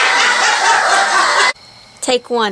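Men laugh loudly close by.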